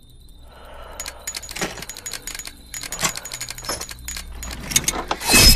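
A small metal mechanism clicks and ticks rapidly, growing louder.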